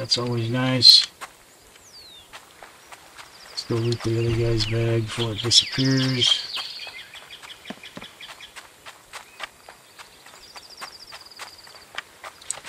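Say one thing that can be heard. Footsteps tread steadily over dirt and gravel.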